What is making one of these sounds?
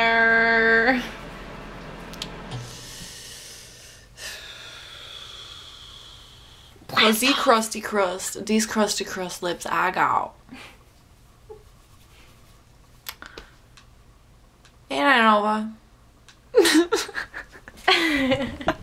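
A second young woman talks and laughs nearby.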